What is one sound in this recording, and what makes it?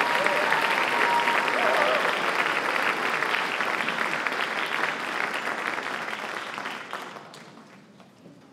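An audience applauds loudly in a large hall, then the applause fades.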